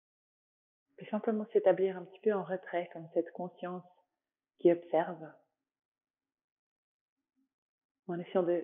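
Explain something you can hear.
A woman speaks calmly and softly, close to a microphone, with pauses.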